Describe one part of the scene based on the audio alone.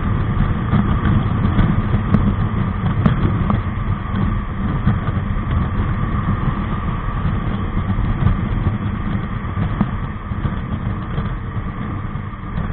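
Wind rushes loudly and steadily past the rider.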